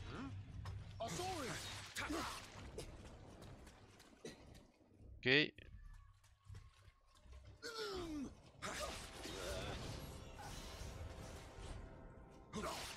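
Swords clash and strike in a fight.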